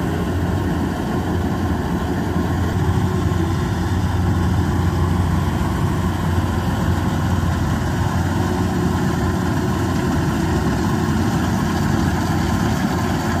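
A combine harvester's diesel engine rumbles steadily close by.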